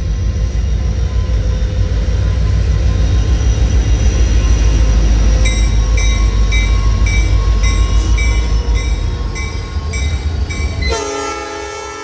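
Diesel locomotives rumble loudly as a freight train passes close by.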